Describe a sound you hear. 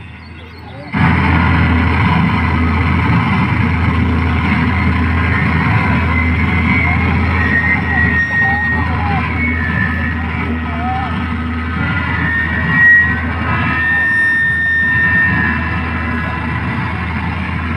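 Loud music plays over a sound system.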